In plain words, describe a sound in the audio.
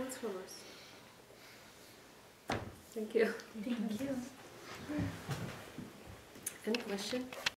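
A woman speaks calmly and warmly close to a microphone.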